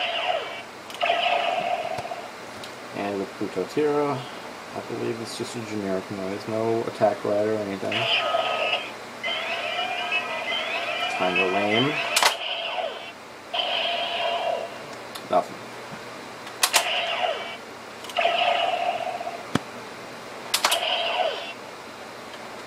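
A toy belt plays bright electronic chimes and tones through a small speaker.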